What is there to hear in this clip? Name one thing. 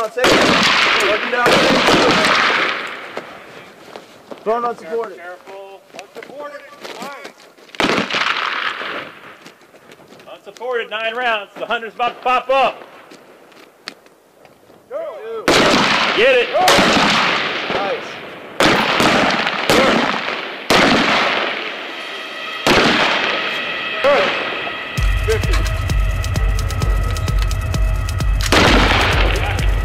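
Rifle shots crack loudly outdoors, each followed by a short echo.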